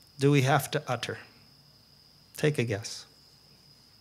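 A middle-aged man speaks calmly into a microphone in short phrases.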